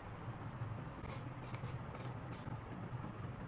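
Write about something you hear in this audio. Long hair rustles softly as it is handled.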